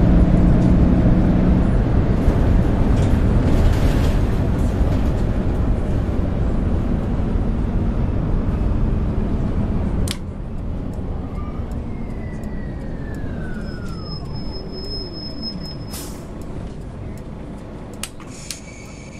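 A bus engine rumbles loudly, then drops to a quieter hum as the bus slows.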